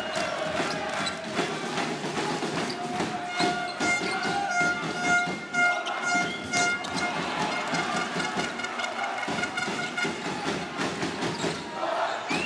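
A crowd cheers and chants in a large echoing hall.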